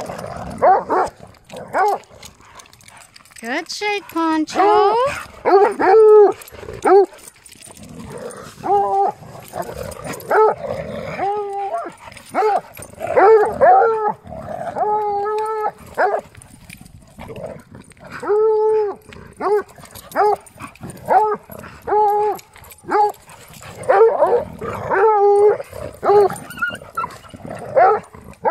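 Dogs bark and bay loudly and often.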